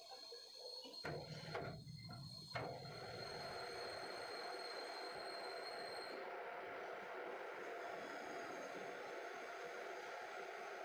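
A lathe spins up and whirs steadily.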